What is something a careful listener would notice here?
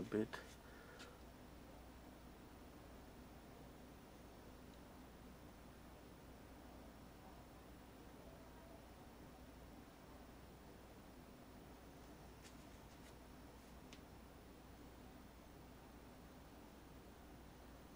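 A paintbrush brushes softly across canvas.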